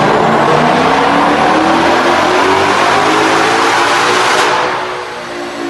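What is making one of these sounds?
A powerful car engine roars at high revs, climbing steadily in pitch.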